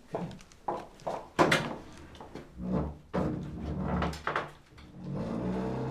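A door shuts.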